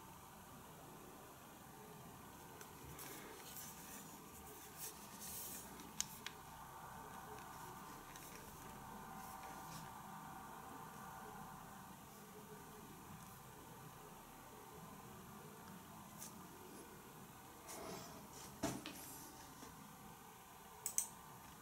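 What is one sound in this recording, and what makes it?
A phone is handled and tapped, with soft clicks and knocks close by.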